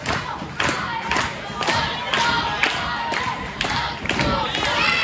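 An indoor crowd claps in rhythm.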